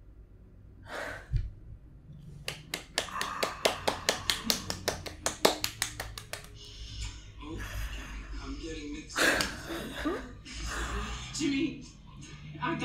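Two young women laugh excitedly close by.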